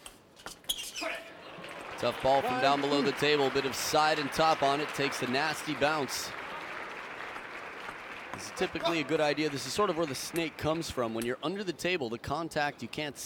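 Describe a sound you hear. A crowd cheers and applauds.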